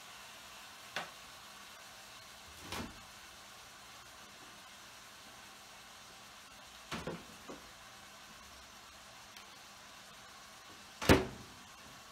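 Kitchenware knocks on a counter.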